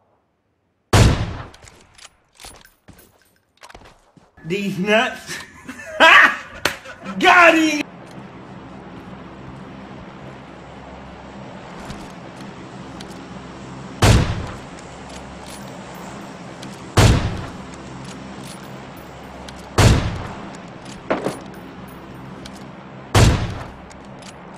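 Loud sniper rifle shots crack and echo, several times.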